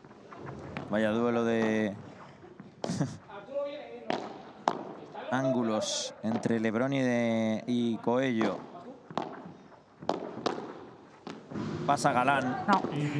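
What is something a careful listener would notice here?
Padel rackets strike a ball with sharp pops, echoing in a large hall.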